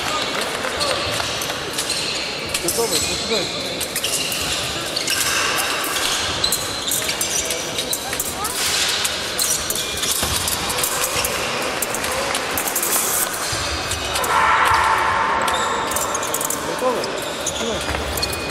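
Steel blades clink against each other.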